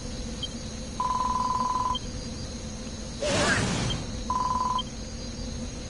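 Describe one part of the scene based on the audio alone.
Rapid electronic beeps chatter as dialogue text scrolls.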